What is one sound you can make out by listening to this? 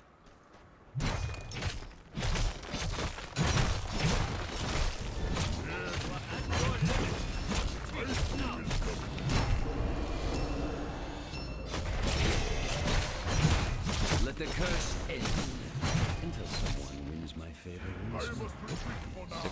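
Video game battle effects clash and zap.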